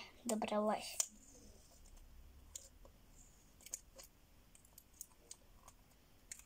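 Small plastic clicks and taps come from a toy being handled.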